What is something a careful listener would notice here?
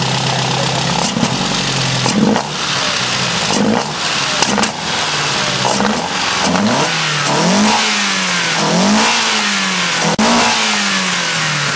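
A car engine revs up and drops back again and again.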